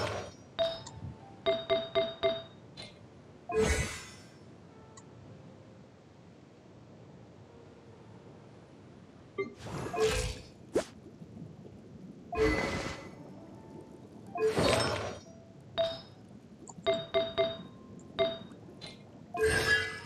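Short bright menu chimes and clicks sound as options are picked.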